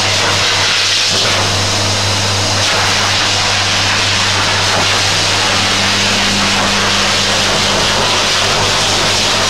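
A blow dryer roars steadily with a loud rush of air.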